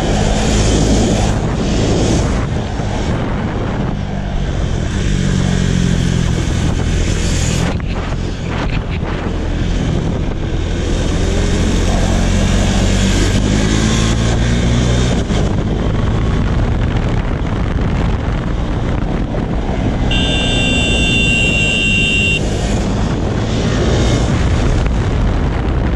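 A single-cylinder KTM Duke 390 motorcycle engine accelerates hard through the gears.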